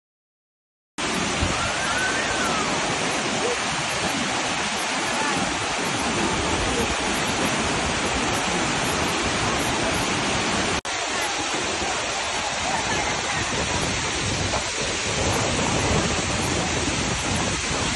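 Water rushes and splashes loudly down a waterfall.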